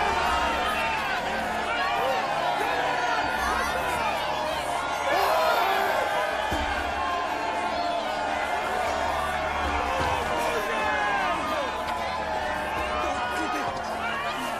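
A large crowd of men and women cheers and shouts loudly outdoors.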